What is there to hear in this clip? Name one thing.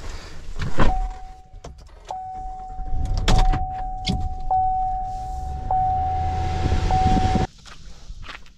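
A truck engine hums from inside the cab.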